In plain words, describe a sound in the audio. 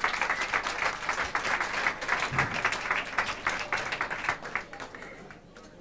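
An audience claps and applauds in a hall, then the applause dies away.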